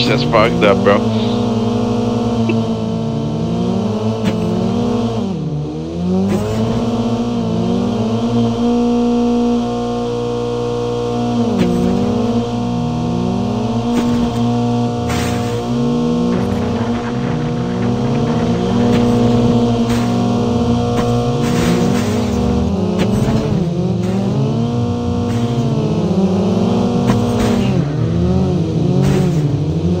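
A car engine roars and revs up and down as the car drives.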